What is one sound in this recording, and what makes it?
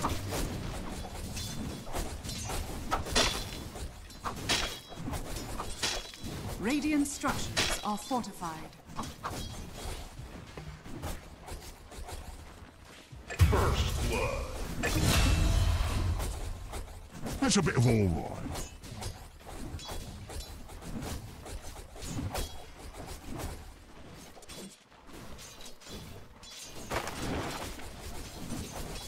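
Video game combat sounds clash and blast in quick bursts.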